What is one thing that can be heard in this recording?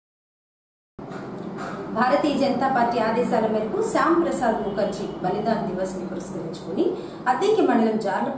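A young woman reads out the news calmly into a microphone.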